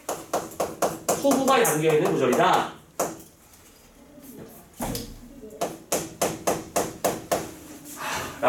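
Chalk taps and scrapes sharply on a blackboard.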